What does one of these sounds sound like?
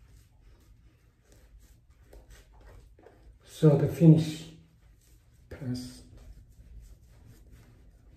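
A shaving brush scrubs lather on skin with a soft, wet swishing.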